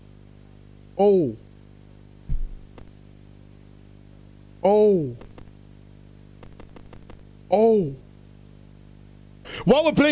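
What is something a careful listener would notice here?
Short falling game tones chime now and then.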